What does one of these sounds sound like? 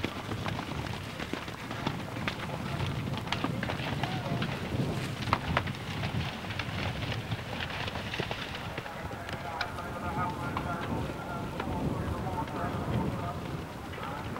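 Horses' hooves thud on soft turf as they land over jumps.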